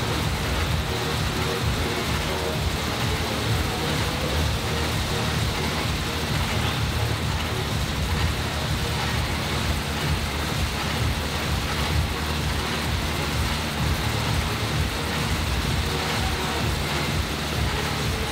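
An air bike's fan whooshes steadily.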